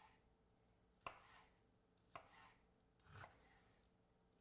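A knife chops on a wooden cutting board.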